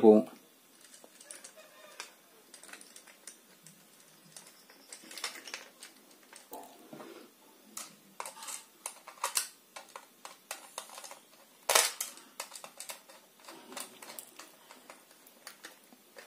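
A screwdriver scrapes and clicks against small screws.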